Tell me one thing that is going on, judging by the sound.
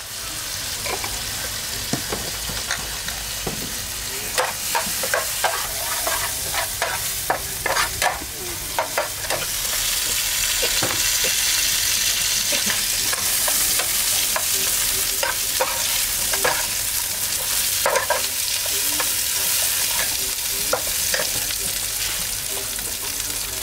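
A metal spatula scrapes and clinks against a pan.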